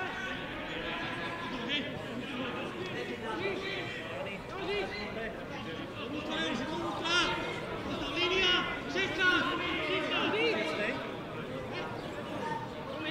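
Men shout to each other across an open pitch outdoors.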